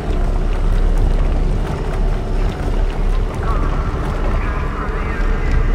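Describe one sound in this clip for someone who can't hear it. Steam hisses steadily from a vent.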